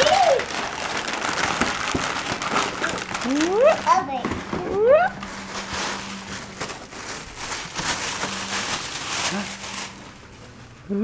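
Wrapping paper rustles and crinkles close by.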